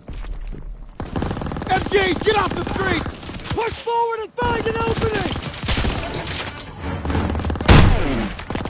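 A submachine gun fires rapid bursts close by.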